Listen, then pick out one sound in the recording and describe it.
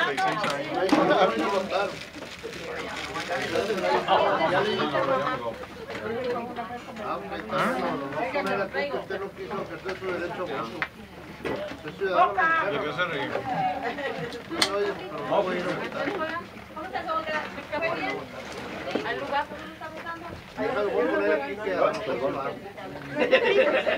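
Several men and women chat and talk over one another nearby.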